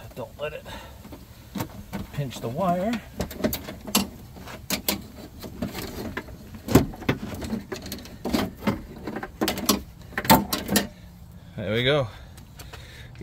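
Metal parts clink and clatter as they are handled.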